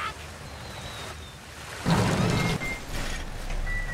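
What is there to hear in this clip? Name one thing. Water pours and splashes heavily.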